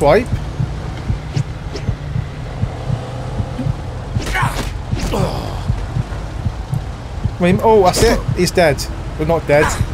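Punches thud in a fistfight.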